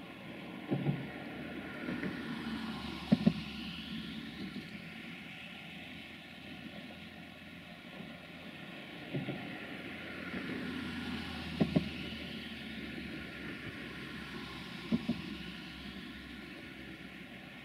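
A passenger train rolls away along the rails.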